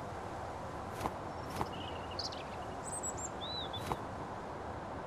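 Small objects clatter as they are picked up.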